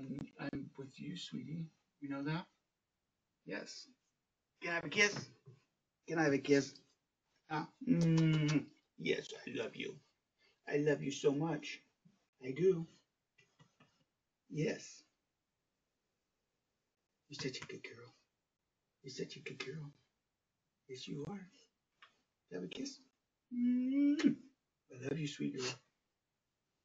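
A middle-aged man talks softly and affectionately, close by.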